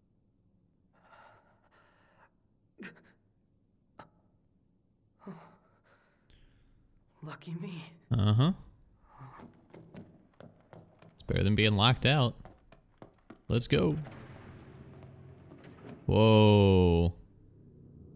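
A young man speaks quietly to himself.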